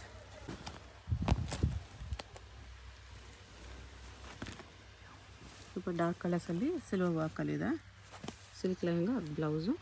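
Silky fabric rustles as it is spread out and shaken.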